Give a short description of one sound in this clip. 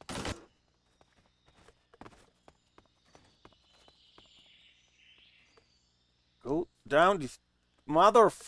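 Soft footsteps shuffle across a hard floor.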